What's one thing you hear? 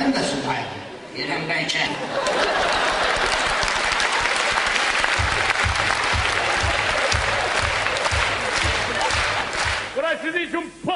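A large audience laughs and applauds loudly.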